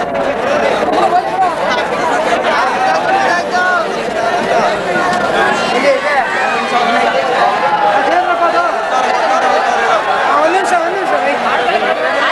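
A large crowd cheers and shouts outdoors.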